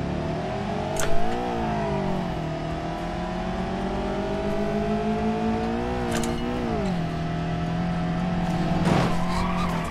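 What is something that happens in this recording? A car engine revs and shifts gears as it speeds up.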